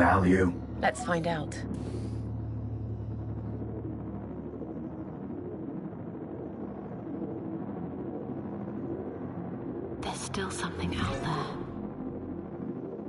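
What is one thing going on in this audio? A spaceship engine hums steadily.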